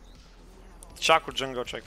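A young man speaks loudly into a microphone.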